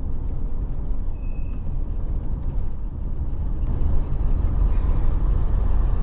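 Tyres roll on asphalt with a low rumble.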